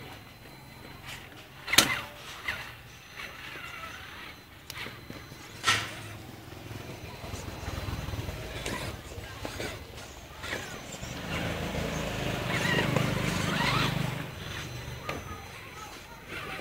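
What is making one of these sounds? An electric radio-controlled truck whirs as it crawls over dirt and stones.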